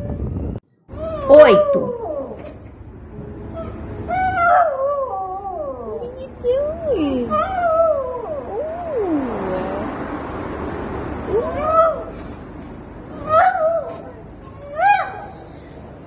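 Small dogs howl together in short, wavering cries.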